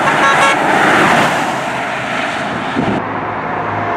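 A vehicle drives past on a road.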